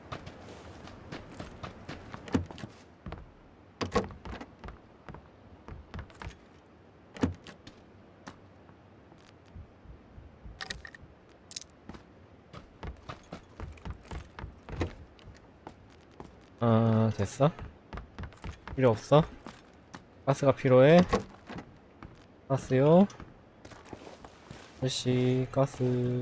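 Footsteps thud on wooden floors indoors.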